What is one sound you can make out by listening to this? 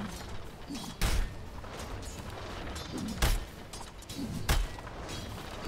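Loud game spell blasts boom sharply.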